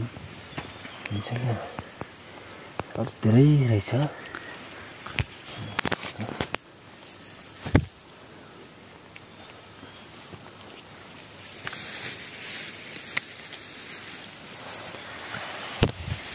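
Leaves and undergrowth rustle as a hand moves through them.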